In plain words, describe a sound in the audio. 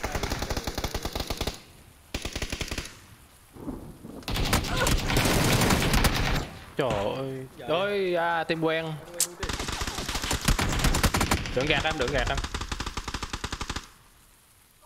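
Rapid gunfire cracks in bursts.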